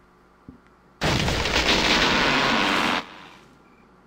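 Explosions roar and crackle in a loud burst.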